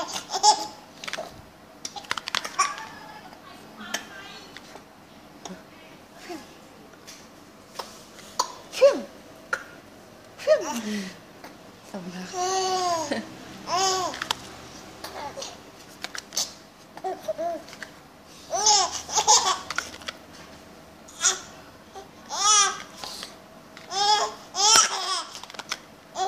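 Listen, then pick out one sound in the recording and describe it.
A baby giggles and squeals with delight.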